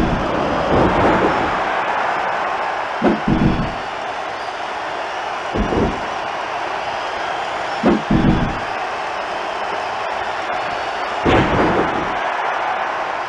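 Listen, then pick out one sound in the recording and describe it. A large crowd cheers and roars steadily, as in a big arena.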